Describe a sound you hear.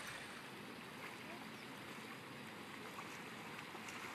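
A man's legs slosh through shallow water.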